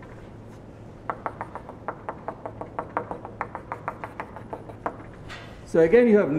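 Chalk taps and scrapes rapidly on a blackboard.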